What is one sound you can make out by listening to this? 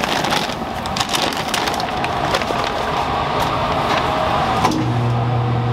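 Flour pours and rustles out of a paper sack.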